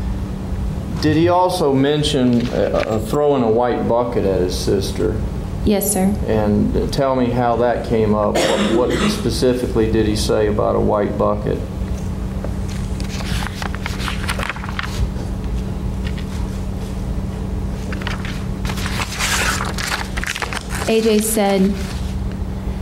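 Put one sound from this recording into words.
A young woman speaks calmly into a microphone.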